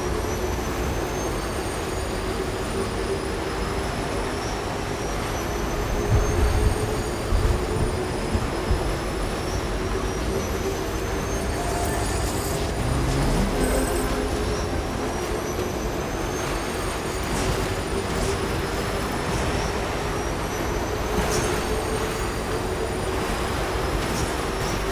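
A motorbike engine hums steadily as it rides.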